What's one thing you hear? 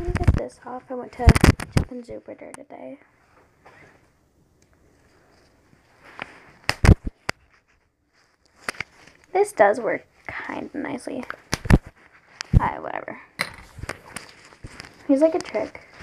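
A young girl speaks softly and closely into a microphone.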